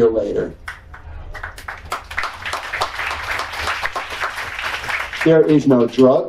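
An audience applauds briefly.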